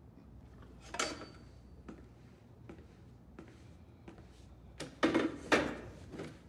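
A metal chair scrapes on a hard floor.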